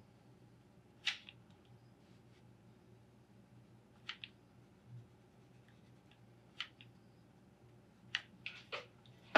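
A staple gun snaps sharply several times.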